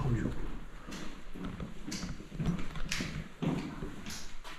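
Footsteps thud on stairs in an echoing stairwell.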